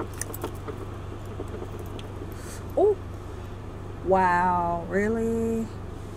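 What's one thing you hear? Keys jingle in a hand.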